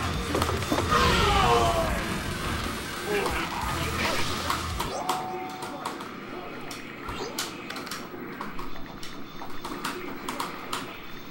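Video game fight effects clash and whoosh over game music.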